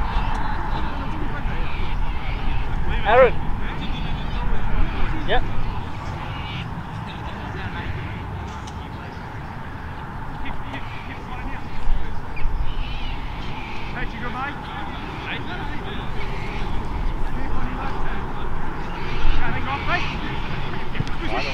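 Wind blusters outdoors across the open ground.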